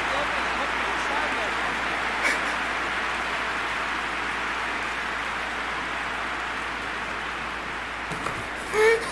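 A stadium crowd roars steadily, then fades.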